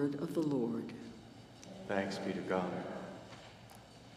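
A man chants through a microphone in an echoing hall.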